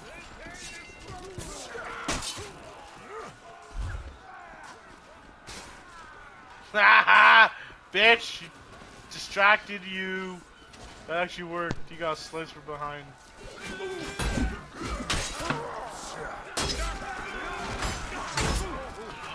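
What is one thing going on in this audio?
Swords clash and strike in a melee fight.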